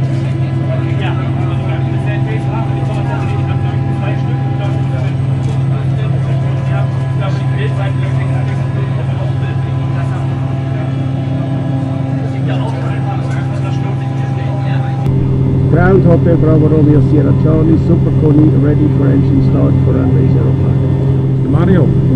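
Aircraft engines drone steadily inside a cabin.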